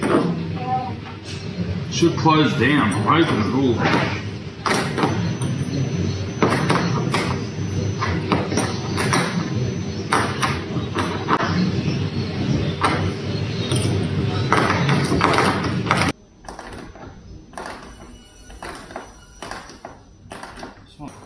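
Hands scrape and tap against a boat's hull.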